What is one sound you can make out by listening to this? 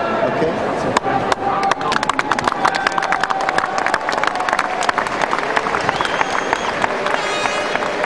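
A large crowd claps and cheers in an open stadium.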